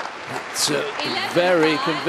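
Two people clap their hands.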